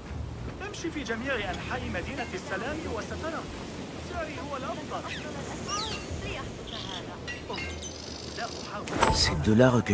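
People murmur in the distance.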